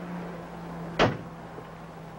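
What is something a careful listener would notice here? A car door slams shut nearby.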